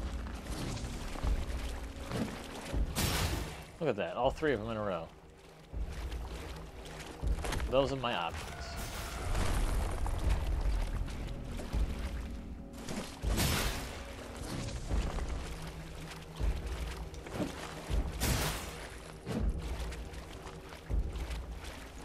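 Water splashes underfoot.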